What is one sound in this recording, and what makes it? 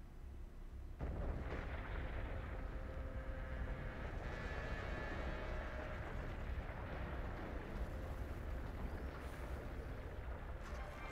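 Dust clouds billow up with a low, steady rumble.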